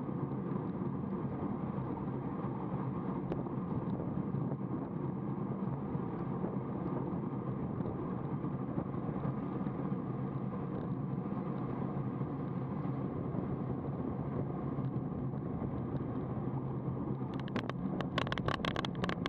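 Wind rushes steadily past the microphone.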